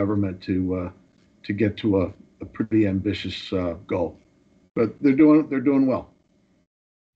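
A middle-aged man speaks calmly into a microphone over an online call.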